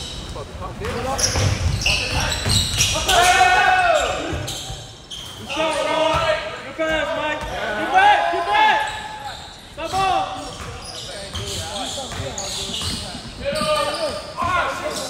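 Players' footsteps thud and patter across a wooden court.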